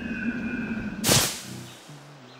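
A body lands with a heavy thump in a pile of hay.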